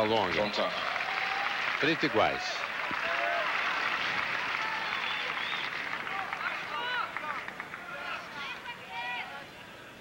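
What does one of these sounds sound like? A crowd applauds and cheers loudly, then fades.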